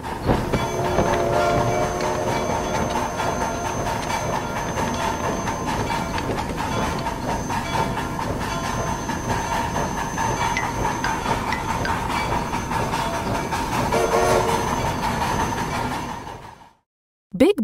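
A toy train rumbles and clatters steadily along its tracks.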